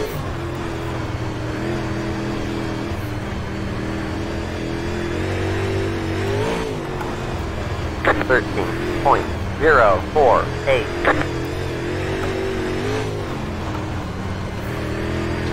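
A racing car engine drones steadily, rising and falling with speed.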